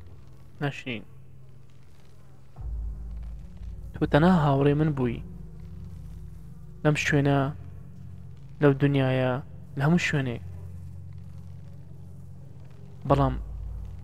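A young man speaks with animation in short bursts close to a microphone.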